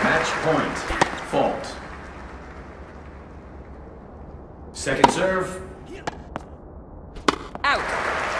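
A tennis ball is struck with a sharp pop.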